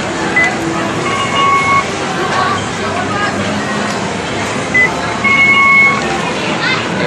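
An arcade machine beeps with short electronic tones.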